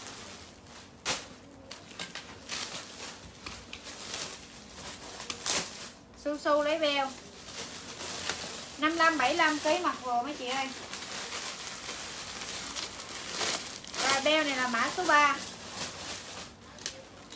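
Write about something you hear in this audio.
Plastic wrapping and fabric rustle as clothes are handled.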